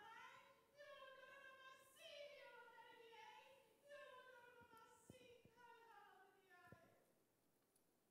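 A woman sings softly through a microphone.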